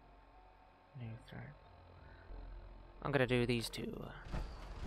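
Electronic menu beeps chirp briefly.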